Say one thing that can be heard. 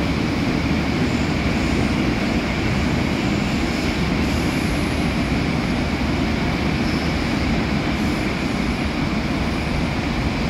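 Wheels clatter and squeal on the rails.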